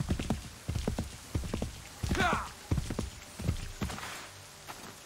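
Hooves thud on soft ground as a horse gallops.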